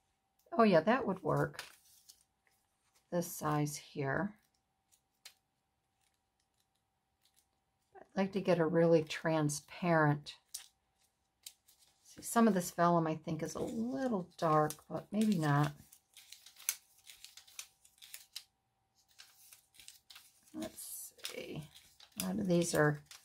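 Paper rustles softly as it is folded and pressed.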